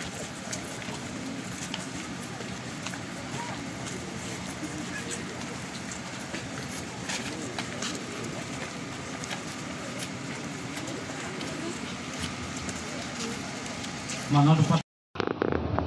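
A large crowd of men and women murmurs and sings together outdoors.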